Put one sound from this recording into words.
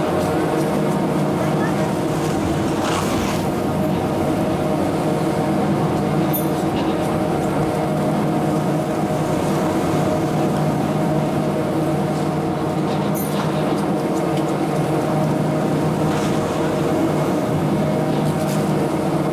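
Chairlift seats clank as they swing around the bullwheel.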